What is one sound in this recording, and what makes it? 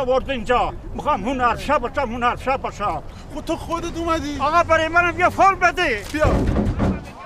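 An elderly man speaks loudly and angrily up close.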